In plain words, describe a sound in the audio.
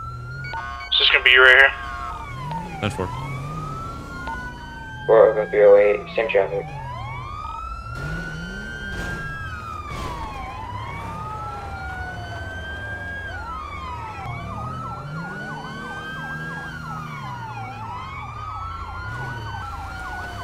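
A police siren wails up and down steadily.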